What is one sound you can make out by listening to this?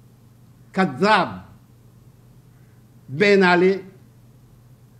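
An elderly man speaks calmly and slowly into a nearby microphone, with pauses between phrases.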